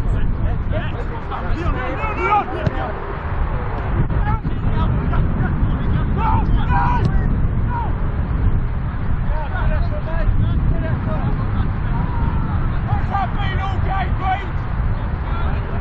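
Young men shout and call out to each other from across the field.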